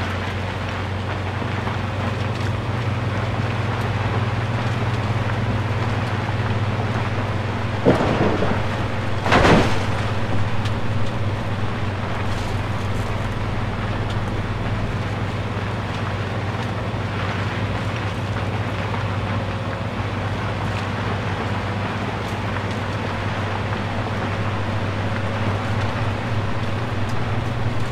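Tyres rumble and crunch over a rough dirt road.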